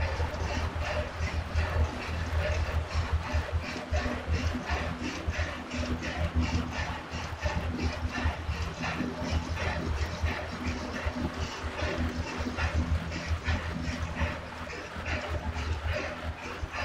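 An indoor bike trainer whirs steadily.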